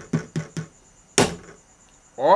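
A crab shell cracks and crunches.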